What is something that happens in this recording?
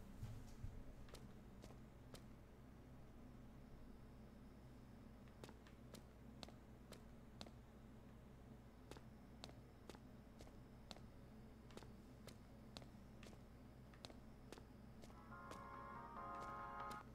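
Footsteps tread steadily on a hard floor.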